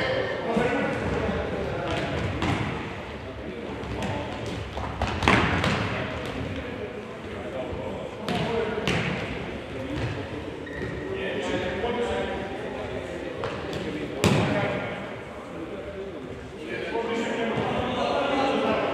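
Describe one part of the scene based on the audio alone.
Players shout to each other across an echoing hall.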